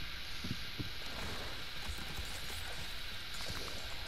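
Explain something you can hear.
Metal parts clink and rattle as something is assembled.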